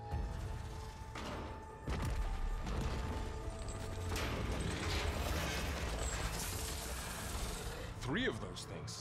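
Huge machines rumble and crash heavily.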